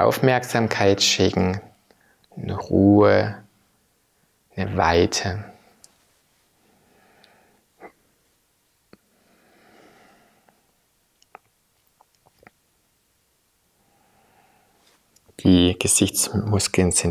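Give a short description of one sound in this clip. A man speaks calmly and gently, close to a microphone.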